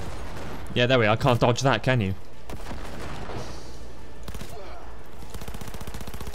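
A gun fires a few shots.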